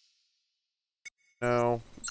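A short electronic menu blip sounds.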